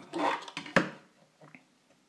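A plastic block knocks and clatters against a hard tabletop.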